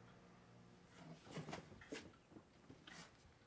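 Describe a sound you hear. Cardboard rustles and scrapes as a box is handled.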